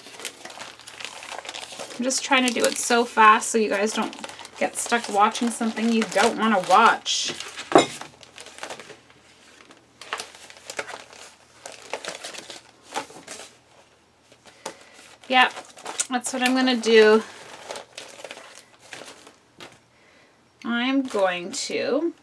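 Plastic page sleeves rustle and crinkle as pages are turned.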